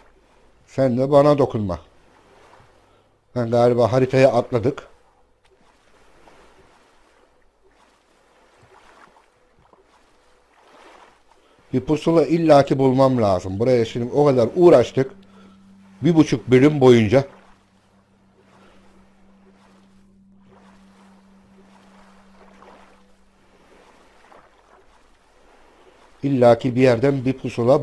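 A paddle splashes softly through calm water.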